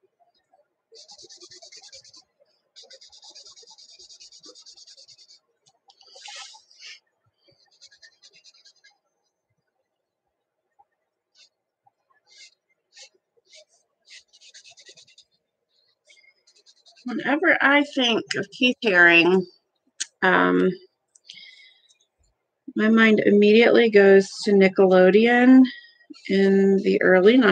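A felt-tip marker scratches and squeaks across paper.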